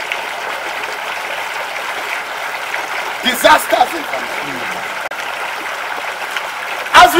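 A man speaks into a microphone outdoors.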